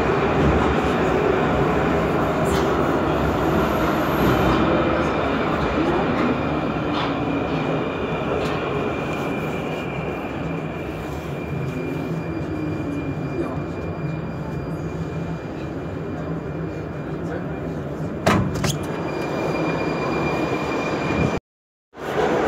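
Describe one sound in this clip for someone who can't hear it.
A high steady whine comes from a metro train.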